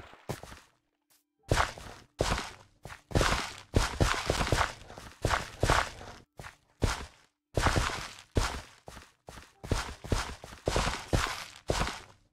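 Soil crunches as a hoe tills the ground.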